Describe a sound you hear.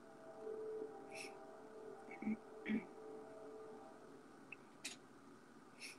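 A young woman speaks softly over an online call.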